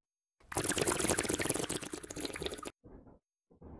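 A person gulps a drink noisily close to a microphone.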